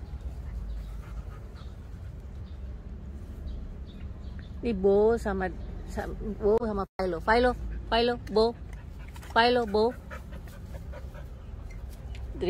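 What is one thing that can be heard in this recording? Two puppies sniff and snuffle in the grass close by.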